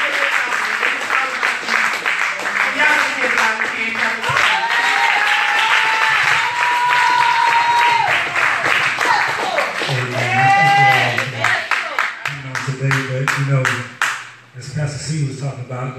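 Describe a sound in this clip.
A crowd claps hands in a steady rhythm.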